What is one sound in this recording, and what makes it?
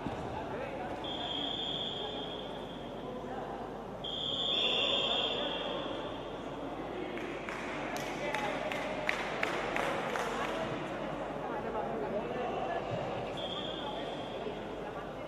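A referee's whistle blows sharply several times.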